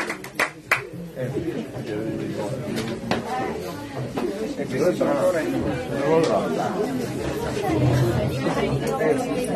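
Several men talk and chatter close by.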